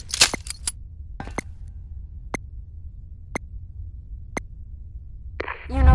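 A rifle clicks sharply as it is handled.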